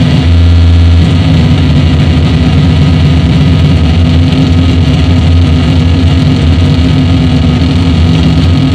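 Loud electronic music with a deep droning bass plays through speakers.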